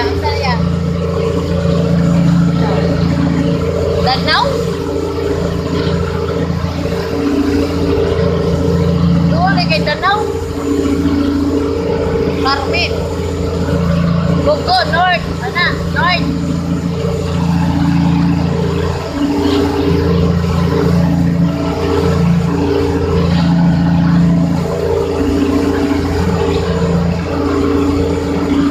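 Water rushes and splashes along the side of a moving boat.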